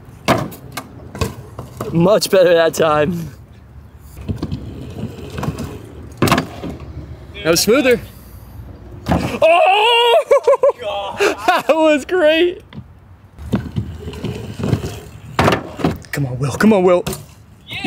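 A bicycle thuds onto a wooden box.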